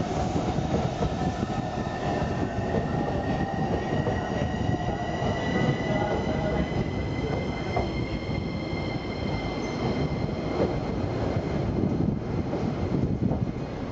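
A train's motor whines, rising slowly in pitch as it speeds up.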